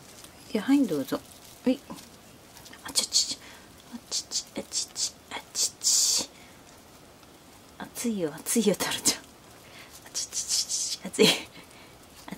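A cockatoo crunches food with its beak.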